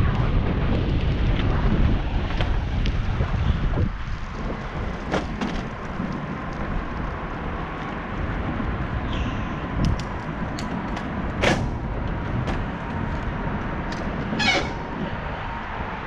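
Tyres roll over concrete.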